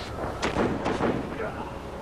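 Hands grab and scrape against a rough ledge.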